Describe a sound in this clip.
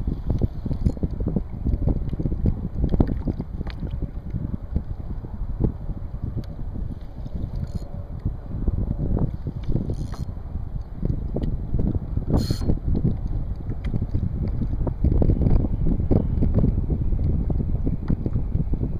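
Small waves lap against a kayak hull.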